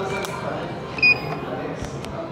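An elevator call button beeps when pressed.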